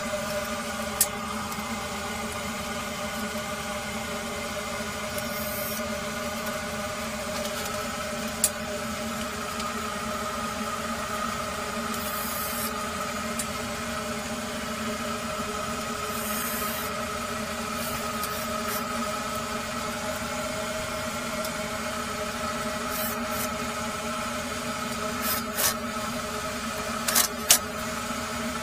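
A metal tool clanks against a metal pipe now and then.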